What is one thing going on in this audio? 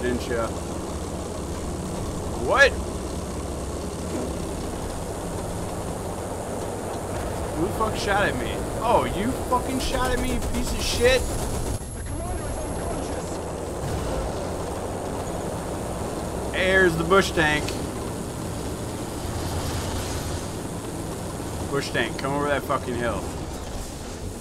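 A vehicle engine rumbles steadily.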